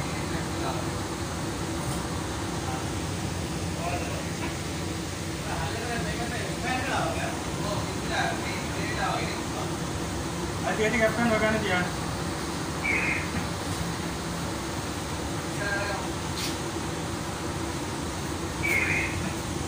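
Water jets spray and hiss steadily close by.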